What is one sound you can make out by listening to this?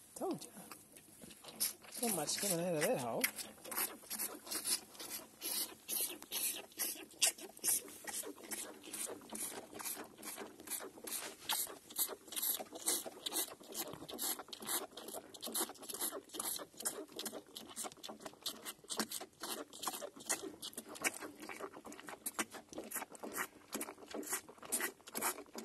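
A calf sucks noisily and rhythmically at a rubber teat, slurping and smacking up close.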